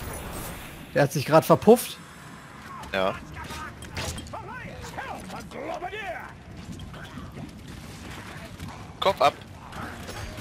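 A crossbow fires with sharp twangs.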